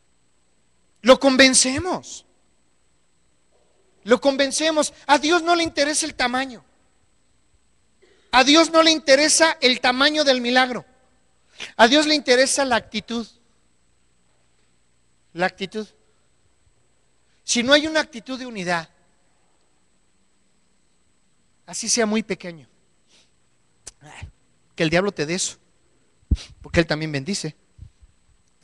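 A middle-aged man speaks with animation into a microphone, heard through loudspeakers in bursts with pauses.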